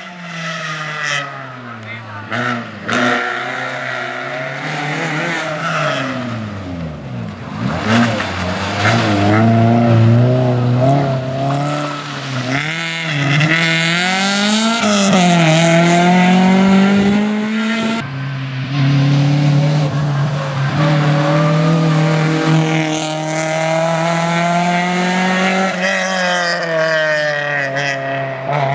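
A rally car engine revs hard and roars past, rising and falling in pitch as it shifts gears.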